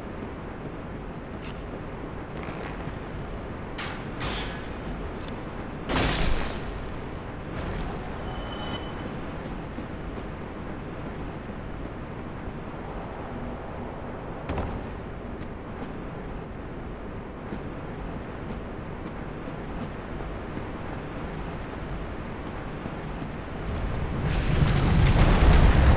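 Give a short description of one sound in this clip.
Armored footsteps clatter on a stone floor.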